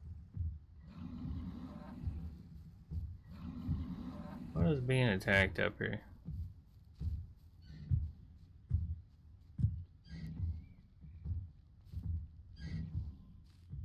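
Footsteps thud on soft ground at a steady pace.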